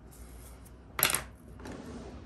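A thin brush clatters down onto a board.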